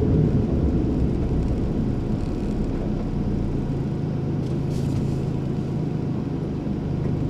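Tyres roll over the road.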